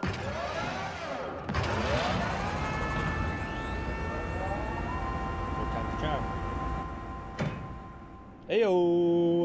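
A machine whirs and hums as it powers up.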